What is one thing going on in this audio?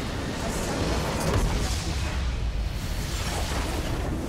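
A large structure in a video game explodes with a heavy boom.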